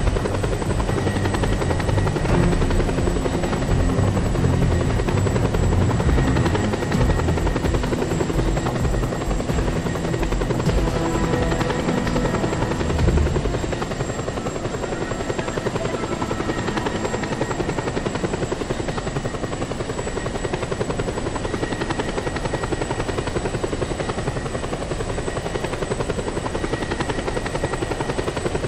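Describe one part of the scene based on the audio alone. An attack helicopter's rotor thumps in flight.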